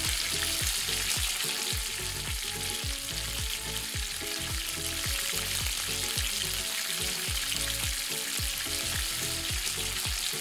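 Oil sizzles and bubbles as food deep-fries.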